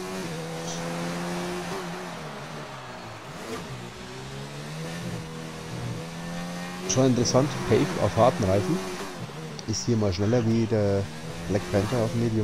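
A racing car engine drones steadily, its pitch rising and falling with the speed.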